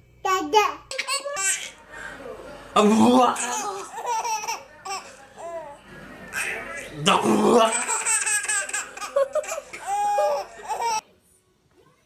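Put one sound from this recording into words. A baby laughs loudly and squeals.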